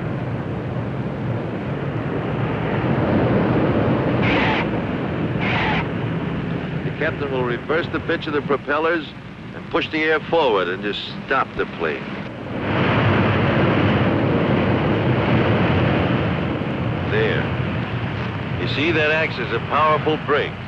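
Propeller engines of a large airliner roar loudly and steadily.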